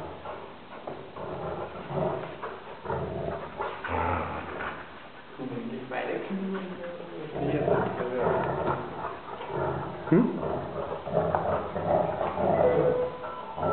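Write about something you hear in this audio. Dog claws skitter on a hard floor.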